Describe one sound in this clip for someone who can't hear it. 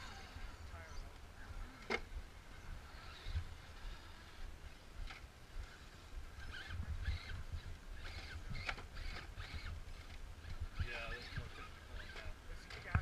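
Small electric motors whine as toy trucks climb over rock.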